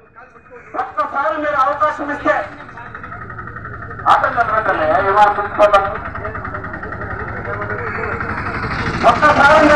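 A man speaks loudly and with animation through a microphone and loudspeaker.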